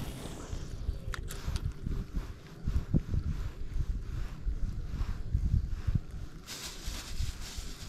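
A fishing reel whirs as its handle is turned.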